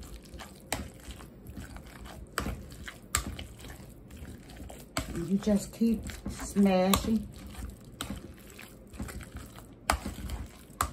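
A metal masher squelches and thumps through soft mashed potatoes in a metal pot.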